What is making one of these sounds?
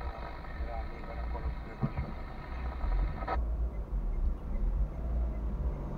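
A car engine idles with a low rumble inside the cabin.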